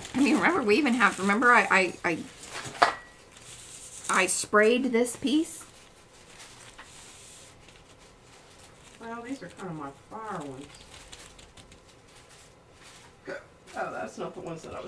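Hands rub and smooth a sheet of paper.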